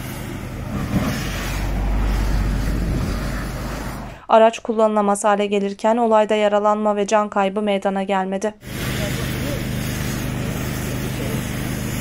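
Water hisses from a fire hose onto a burning car.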